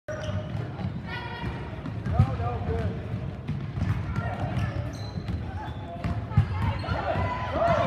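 Spectators in the stands cheer and murmur.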